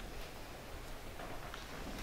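Papers and folders rustle as they are handed over.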